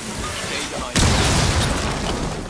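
An explosion bursts loudly nearby.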